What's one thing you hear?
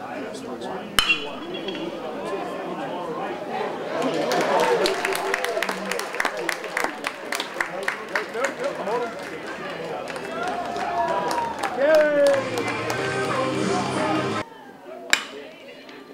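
A baseball bat cracks sharply against a ball.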